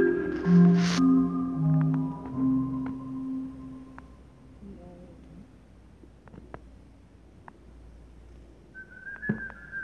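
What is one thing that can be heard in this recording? A marimba and vibraphone play a ringing melody in a large echoing hall.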